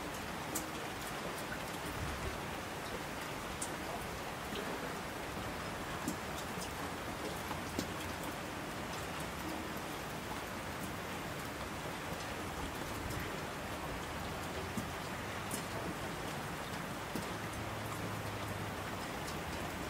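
Mountain torrents rush and roar.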